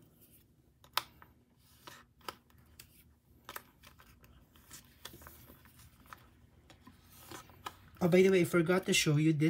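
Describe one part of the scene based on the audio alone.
Plastic sleeves crinkle and click as cards are slid in and out.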